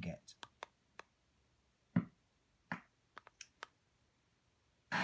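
Buttons on a small radio click under a finger.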